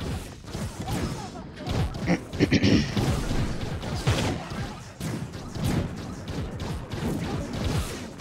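Icy blasts crackle and whoosh.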